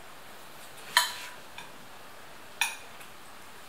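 A utensil clinks against a dish.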